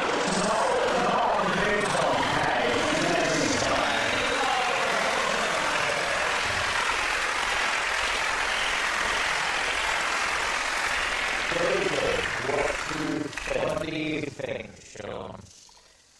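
A man talks with animation over a microphone.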